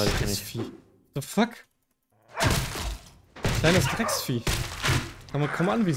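Sharp blows chop through leafy plants.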